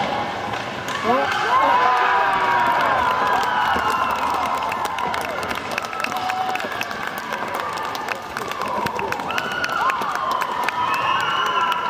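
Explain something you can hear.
A crowd cheers loudly in an echoing arena.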